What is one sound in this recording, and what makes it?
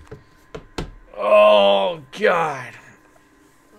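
A man groans loudly in frustration.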